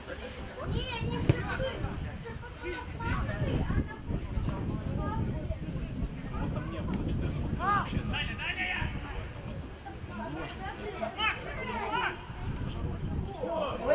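Young male players shout to each other across an outdoor pitch.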